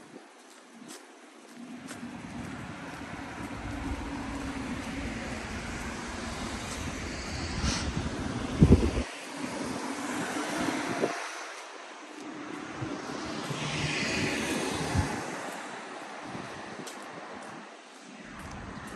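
Cars drive past on a nearby road, their tyres rushing.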